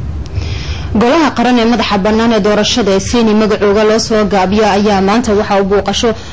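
A woman reads out clearly into a microphone.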